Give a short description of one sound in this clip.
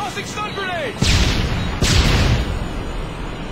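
Explosions boom close by, one after another.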